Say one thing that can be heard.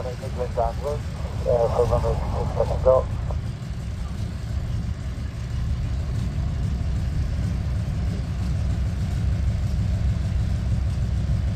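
A propeller aircraft engine idles with a deep, steady rumble outdoors.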